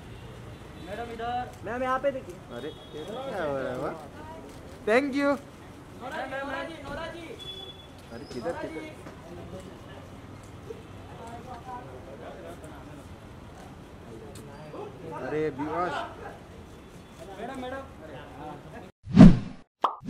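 Men nearby shout and call out.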